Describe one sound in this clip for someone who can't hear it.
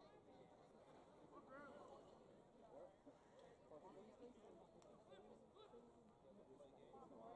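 A crowd of spectators chatters nearby outdoors.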